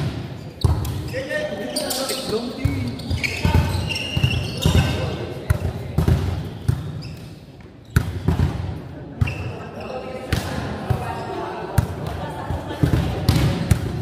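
Young players shout and call out to each other in an echoing hall.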